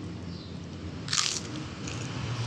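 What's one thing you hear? Food crunches as a woman bites into it.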